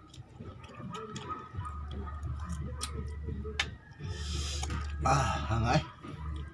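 Cutlery clinks against a plate.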